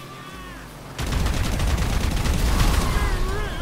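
A large explosion booms loudly.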